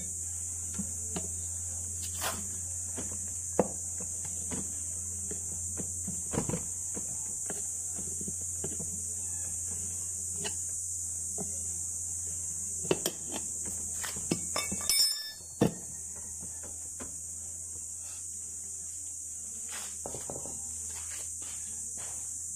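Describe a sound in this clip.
Metal parts clink and knock as a hand works behind a wheel.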